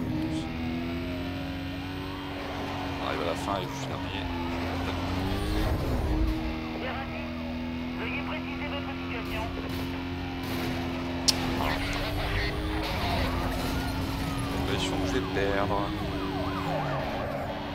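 Tyres screech as a car takes a corner.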